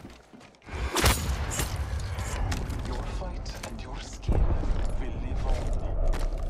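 Heavy thuds and impacts ring out as one fighter strikes down another.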